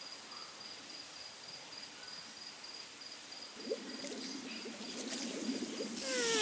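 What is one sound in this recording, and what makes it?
Water bubbles and gurgles in a small pool.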